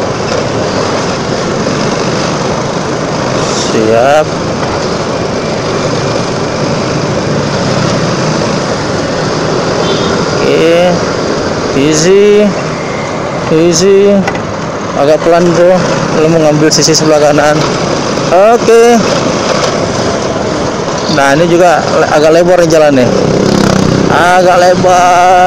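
A scooter engine hums and drones steadily while riding.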